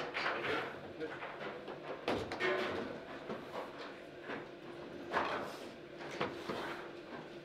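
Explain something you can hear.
Foosball rods rattle and spin as players jerk them.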